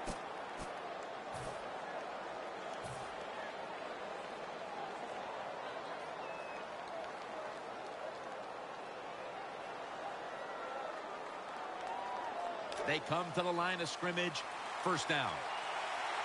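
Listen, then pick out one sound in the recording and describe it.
A large crowd murmurs and cheers steadily in a big open stadium.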